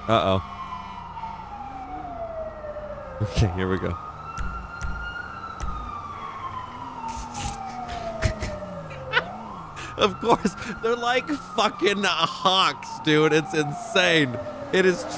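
A police siren wails up and down nearby.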